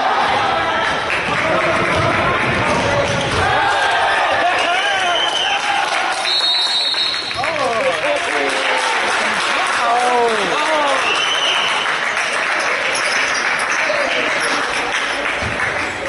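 A crowd of people chatters throughout in an echoing hall.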